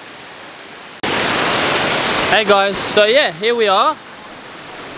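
A waterfall rushes.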